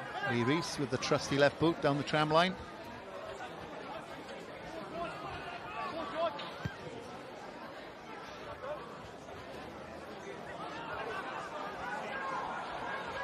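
A crowd cheers and shouts in a large open stadium.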